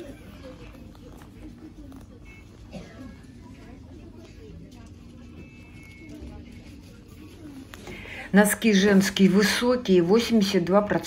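Soft fabric rustles as hands sort through hanging socks.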